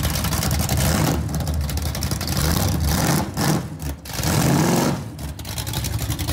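A car engine revs hard several times.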